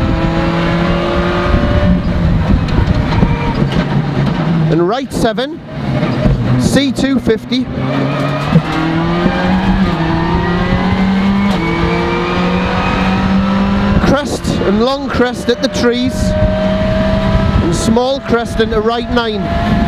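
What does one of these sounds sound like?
A racing car engine roars loudly close by, revving up and dropping as it shifts gears.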